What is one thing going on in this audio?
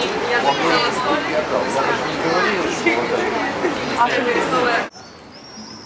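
Many voices chatter in a busy street outdoors.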